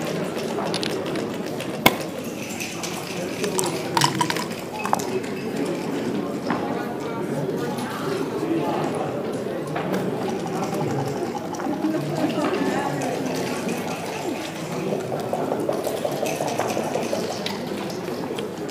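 Plastic game pieces click and clack on a wooden board.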